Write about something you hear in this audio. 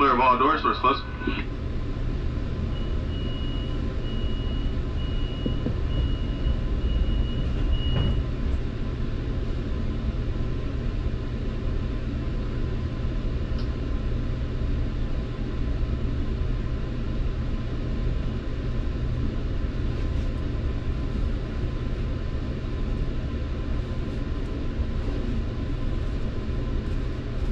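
A train engine rumbles low and steady.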